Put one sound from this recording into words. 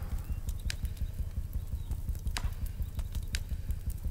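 Flames crackle softly.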